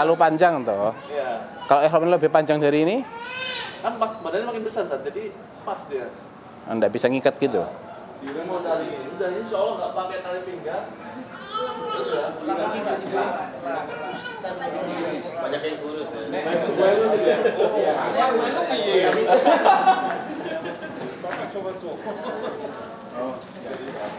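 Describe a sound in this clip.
A man speaks with animation to a group.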